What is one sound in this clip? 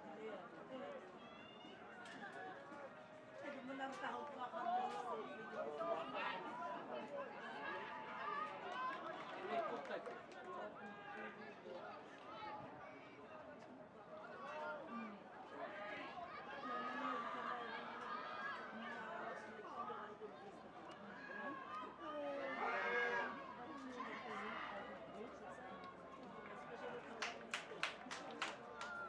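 Young men call out to each other across the field.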